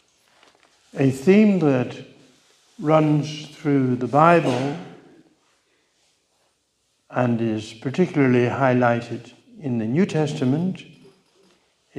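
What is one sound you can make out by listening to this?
An elderly man speaks calmly into a microphone in an echoing room.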